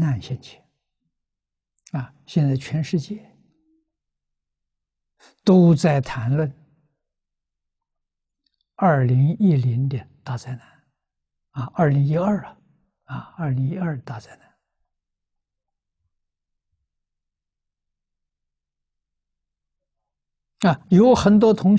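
An elderly man speaks calmly, close to a microphone, in measured phrases with long pauses.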